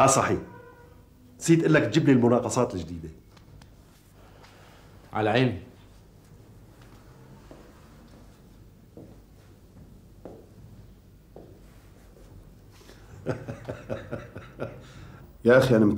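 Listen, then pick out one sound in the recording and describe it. A middle-aged man speaks firmly, close by.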